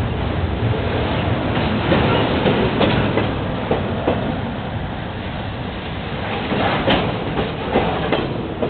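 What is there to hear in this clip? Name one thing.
A freight train rumbles past close by, steady and loud.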